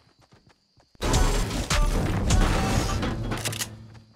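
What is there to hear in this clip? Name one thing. A pickaxe strikes a wooden wall with repeated thuds.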